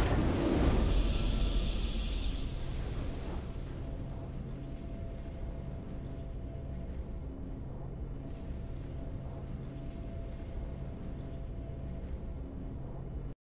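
A triumphant victory fanfare swells and then settles into soft music.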